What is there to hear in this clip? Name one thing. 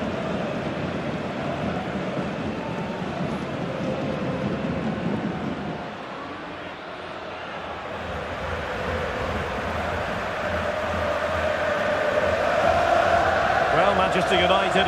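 A large stadium crowd roars and chants steadily, swelling louder toward the end.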